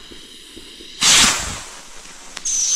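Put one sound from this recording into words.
A firework launches with a sharp bang.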